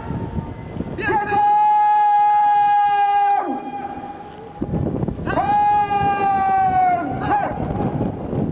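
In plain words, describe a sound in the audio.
A man shouts long drawn-out parade commands outdoors.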